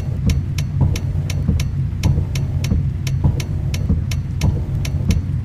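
A turn signal ticks quickly and evenly.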